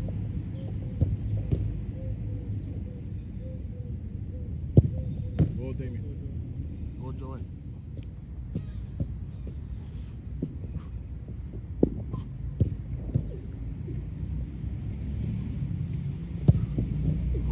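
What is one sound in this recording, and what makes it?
A football is kicked with sharp thuds outdoors.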